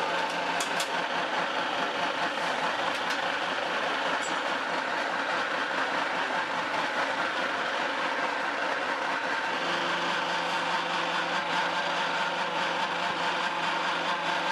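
Feed pellets patter into a plastic tub.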